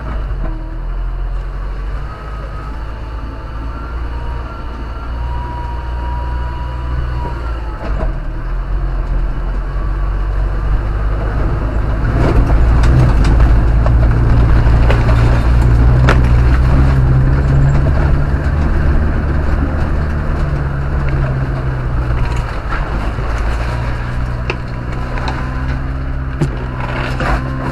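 Snowy branches scrape and thud against the car.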